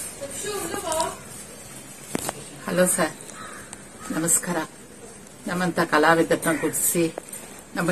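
An older woman speaks calmly and close up.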